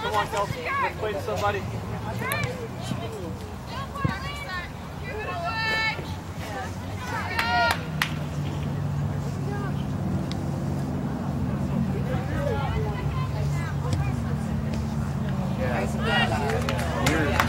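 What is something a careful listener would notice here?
Spectators close by cheer and call out.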